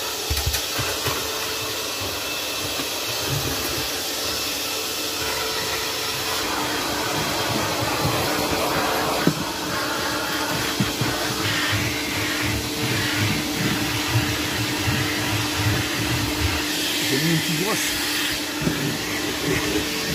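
A vacuum cleaner runs with a steady whine.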